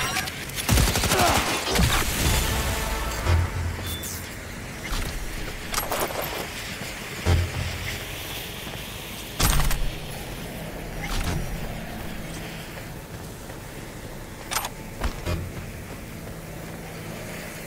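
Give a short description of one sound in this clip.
Footsteps thud on dirt.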